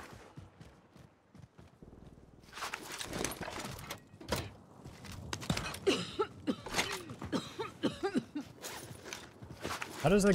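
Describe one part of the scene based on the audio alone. Footsteps crunch on dirt and gravel at a run.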